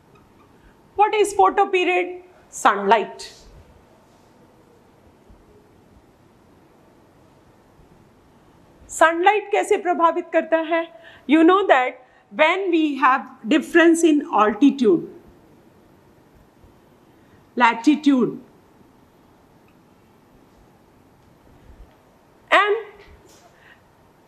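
A woman speaks clearly and steadily, close by, as if teaching.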